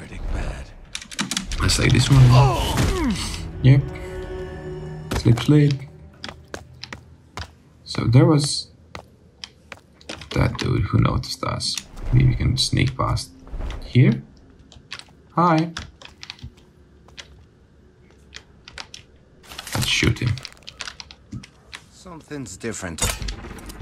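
A man talks in a low, rough voice nearby.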